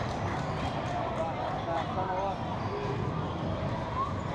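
Sneakers squeak and patter on a wooden court.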